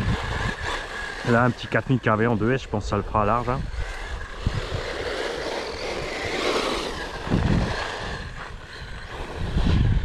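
A small toy car's electric motor whines and revs as it drives over gravel.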